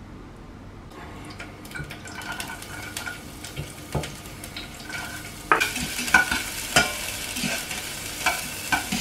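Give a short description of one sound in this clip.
Food sizzles and crackles in a hot pot.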